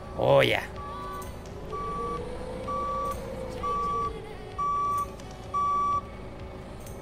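A forklift's warning beeper beeps in short, even pulses.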